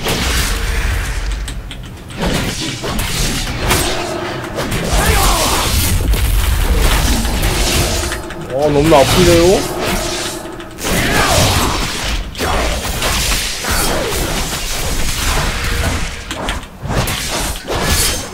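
Blades slash and strike repeatedly in a fast fight.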